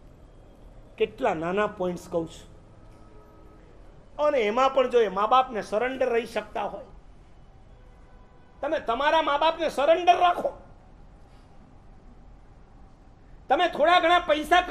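An elderly man speaks with animation in bursts, close to a microphone.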